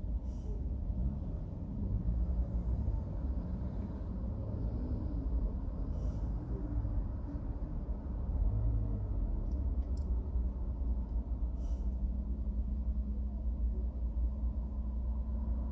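A car engine idles with a low rumble, heard from inside the car.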